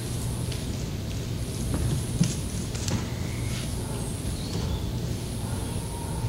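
Performers shuffle and move about on a stage.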